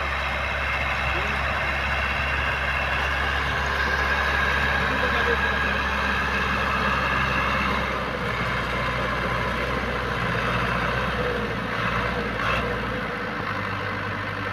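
A tractor engine runs with a steady low rumble close by.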